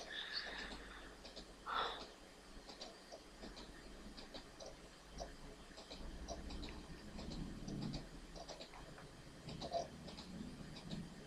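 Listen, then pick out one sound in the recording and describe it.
Soft game clicks sound as items are moved around.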